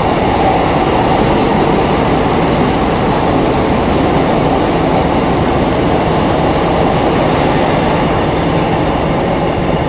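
A train rumbles steadily along the track, heard from inside a carriage.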